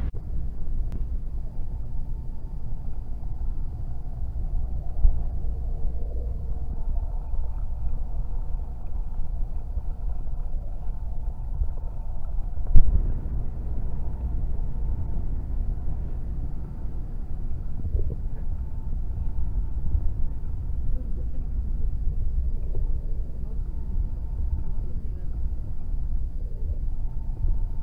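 A vehicle rumbles along at speed, heard from inside.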